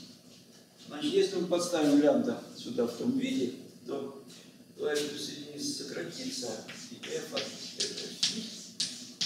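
An elderly man lectures calmly, in a room with some echo.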